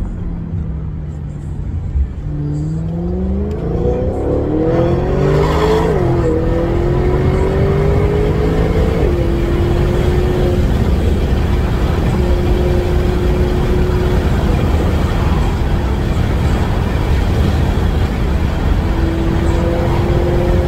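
Tyres rumble steadily on the road inside a moving car.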